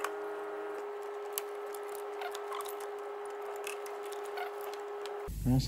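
A rubber belt rustles as hands pull it off its pulleys.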